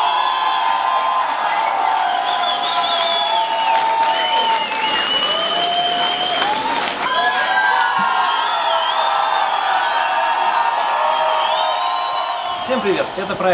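A rock band plays loudly at a live concert.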